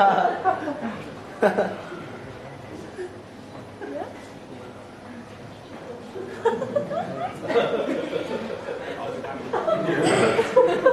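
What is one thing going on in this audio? An elderly man speaks animatedly into a microphone.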